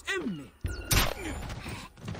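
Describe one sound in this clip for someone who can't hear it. A heavy blow lands with a dull thud.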